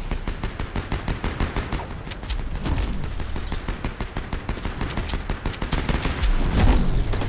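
Quick footsteps patter on grass and ground.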